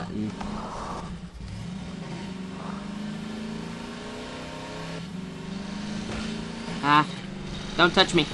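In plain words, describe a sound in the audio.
An engine hums steadily as a buggy drives along.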